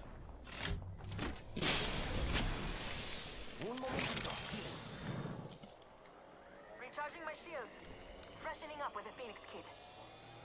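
A zip line whirs as a character rides along it.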